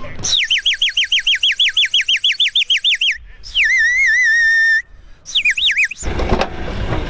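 A clay whistle warbles loudly in quick trills, then holds a long note.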